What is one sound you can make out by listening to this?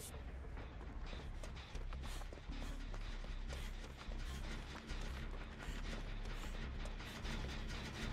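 Footsteps run through rustling grass.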